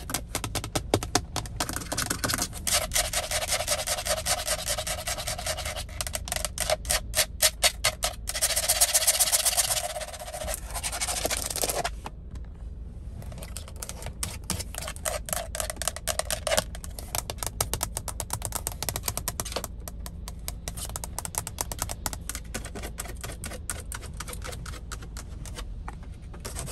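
Long fingernails tap and scratch rapidly on hard plastic close by.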